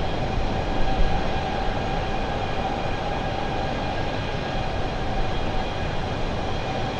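Jet engines roar steadily with a constant hum.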